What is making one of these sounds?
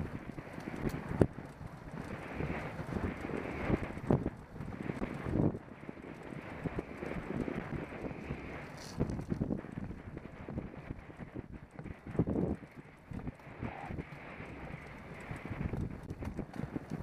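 Wind buffets a microphone loudly in gusts.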